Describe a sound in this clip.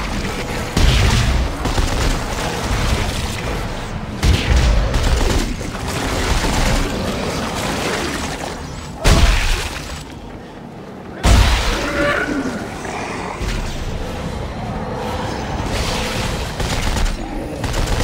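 An energy weapon fires in sharp bursts.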